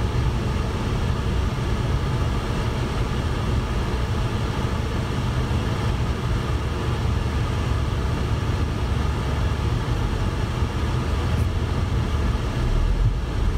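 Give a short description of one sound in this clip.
A car's engine hums steadily while driving slowly in traffic.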